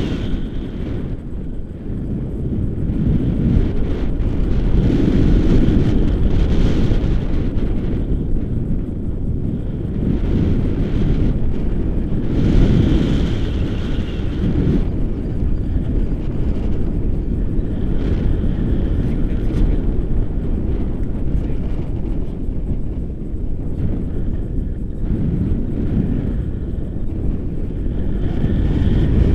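Strong wind rushes and buffets loudly throughout.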